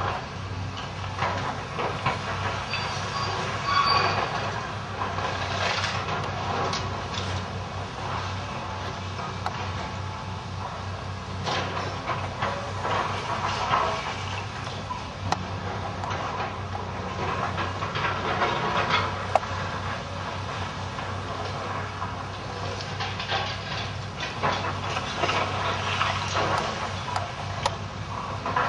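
Rubble crashes and clatters as an excavator tears down a building.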